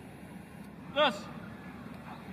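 A man calls out a short, sharp command outdoors.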